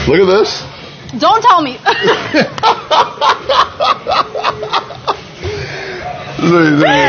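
A man laughs loudly in bursts.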